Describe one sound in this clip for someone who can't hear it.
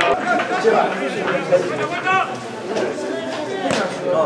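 Spectators chatter and cheer nearby.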